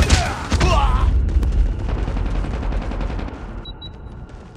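Gunfire rattles in rapid, booming bursts.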